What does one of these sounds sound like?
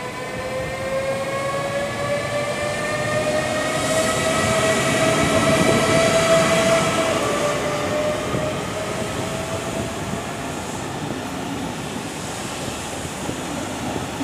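A train rolls past close by, its wheels rumbling on the rails.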